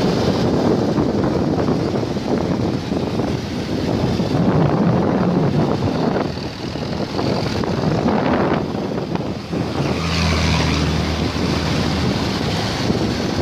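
Car engines hum in passing traffic.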